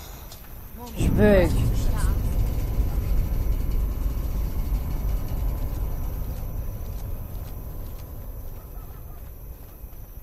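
An explosion booms and rumbles low.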